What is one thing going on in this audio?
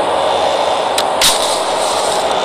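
A match is struck and flares alight.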